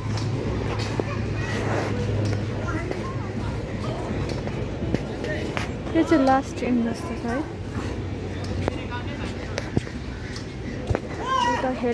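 Badminton rackets pop against a shuttlecock.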